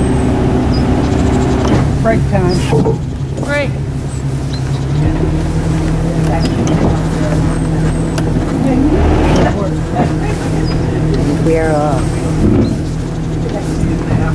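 A boat engine hums steadily nearby, its pitch shifting slightly partway through.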